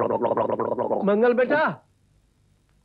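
A man shouts loudly in a long, strained cry.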